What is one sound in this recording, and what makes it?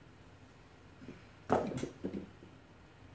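A metal bowl clinks as it is set down on a hard counter.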